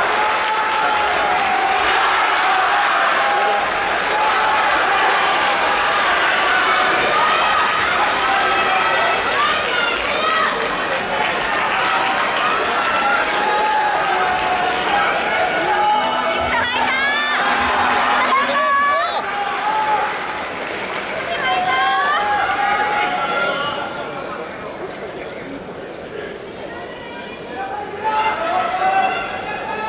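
A large crowd chatters and shouts in a big echoing hall.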